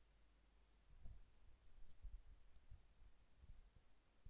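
Hands knock and rustle against a desk close by.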